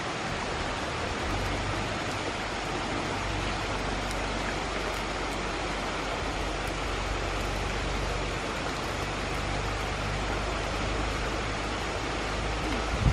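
A fire smoulders with a steady hiss and faint crackles.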